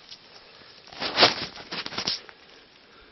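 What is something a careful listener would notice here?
Dry leaves rustle and crackle as a mushroom is pulled from the ground.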